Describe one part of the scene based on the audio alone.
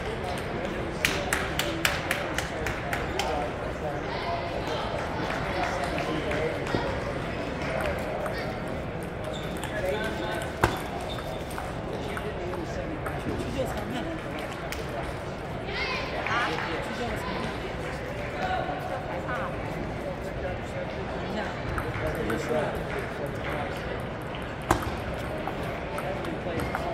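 A table tennis ball clicks back and forth across a table.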